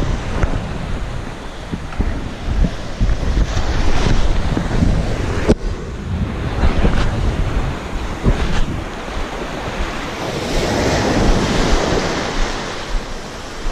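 Wind rumbles across a nearby microphone.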